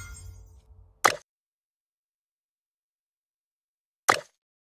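A video game menu chimes briefly.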